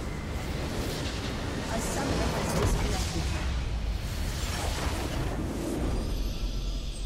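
A structure explodes with loud crashing blasts.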